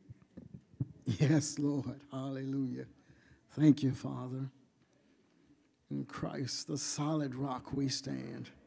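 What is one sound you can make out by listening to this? An elderly man speaks calmly into a microphone in a large echoing room.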